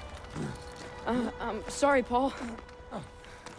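A young man apologises quietly.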